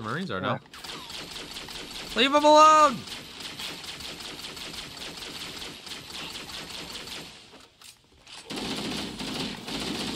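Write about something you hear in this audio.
Rapid game gunfire rattles.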